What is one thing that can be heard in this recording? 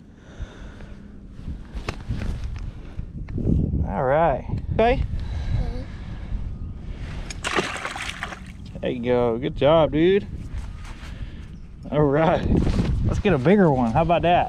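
Water laps against a small boat.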